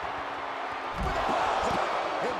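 A heavy body slams onto the floor with a thud.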